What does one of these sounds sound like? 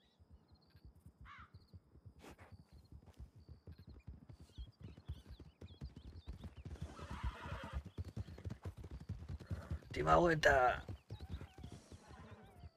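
A horse's hooves thud steadily over grassy ground.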